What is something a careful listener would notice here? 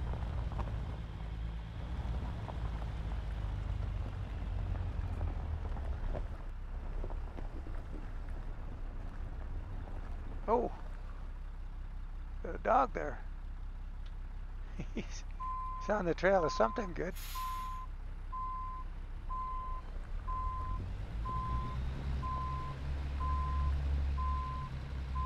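A truck's diesel engine rumbles low and steadily, louder as it pulls away.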